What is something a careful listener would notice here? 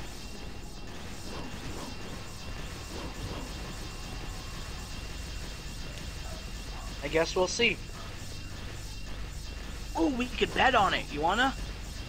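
Heavy spiked walls grind and rumble as they close in.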